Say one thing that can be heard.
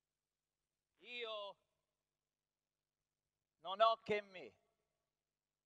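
A man speaks loudly on a stage, heard through a sound system.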